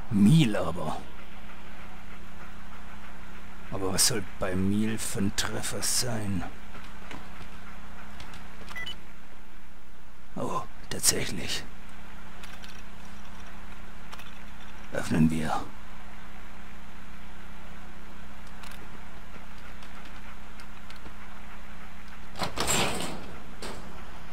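Terminal keys clatter and beep as options are chosen.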